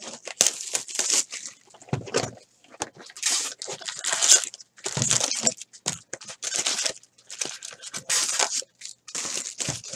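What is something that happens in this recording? Cardboard boxes rustle and scrape as hands open them.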